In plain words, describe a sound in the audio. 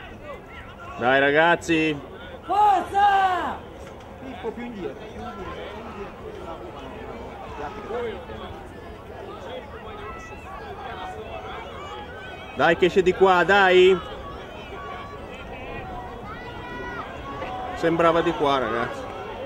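Young players shout loudly across an open field.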